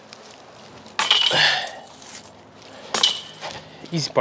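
Metal chains rattle as a disc hits them.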